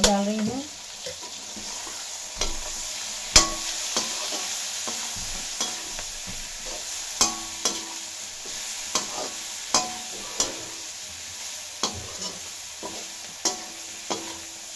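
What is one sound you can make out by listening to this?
A metal spatula scrapes and clanks against a metal wok.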